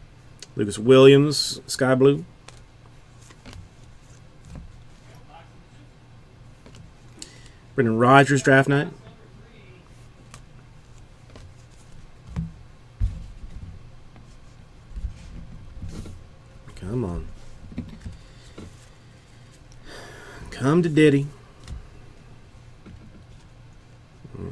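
Trading cards rustle and flick softly as they are sorted by hand.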